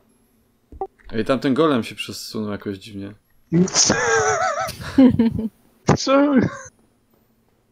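A young man talks animatedly into a microphone, close up.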